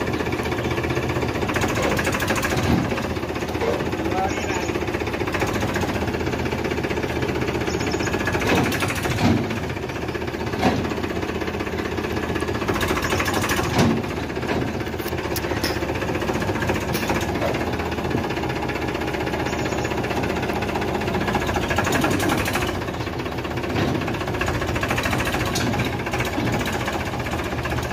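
A tractor engine chugs steadily close by.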